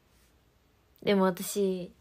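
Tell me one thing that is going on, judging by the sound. A young woman speaks up close with animation.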